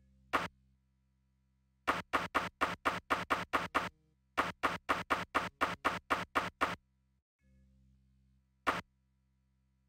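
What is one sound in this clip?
Short, sharp menu clicks tick in quick bursts.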